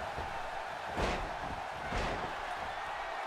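A wrestler slams down onto a wrestling ring mat with a heavy thud.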